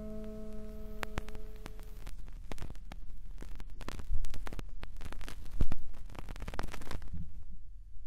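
A needle crackles and pops on a spinning vinyl record.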